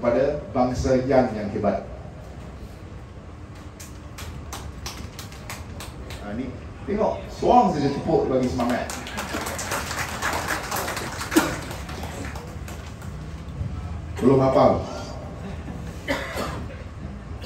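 A young man speaks with animation through a microphone and loudspeakers.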